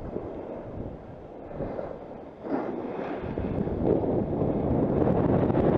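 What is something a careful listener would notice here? Wind rushes past, rumbling and buffeting.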